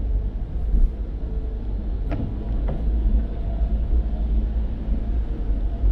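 A windshield wiper swipes across the glass.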